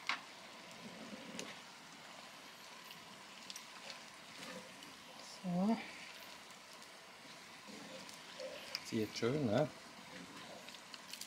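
A wooden spatula scrapes and stirs food in an iron pan.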